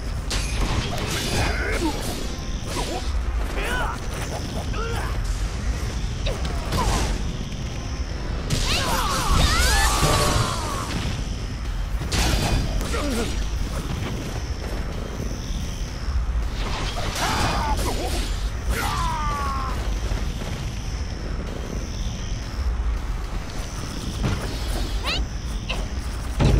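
Swords clash and slash in a fast fight.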